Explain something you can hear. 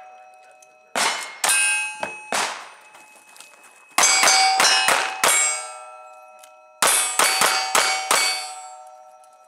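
A single-action revolver fires a string of shots.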